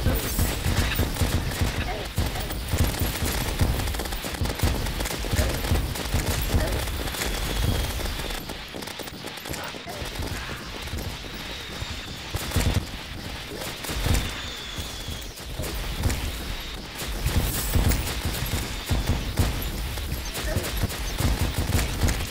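Video game explosions boom and crackle.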